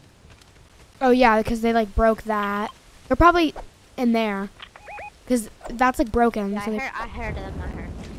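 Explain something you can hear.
A young boy talks excitedly into a headset microphone.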